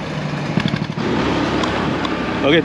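A motorcycle engine hums along a dirt road.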